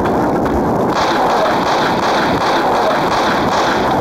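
Game pistols fire in quick bursts.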